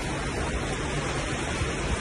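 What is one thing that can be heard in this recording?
Hail rattles and clatters on a car.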